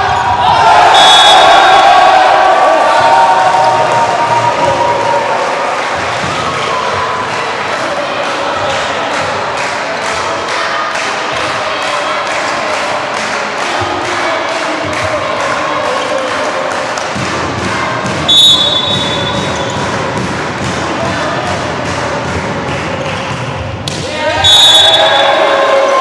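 A referee's whistle blows short, sharp blasts.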